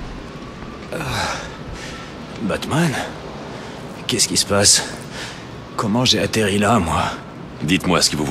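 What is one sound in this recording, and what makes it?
A man speaks in a confused, agitated voice close by.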